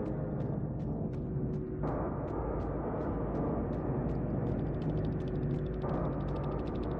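A game's score counter ticks quickly and steadily, speeding up toward the end.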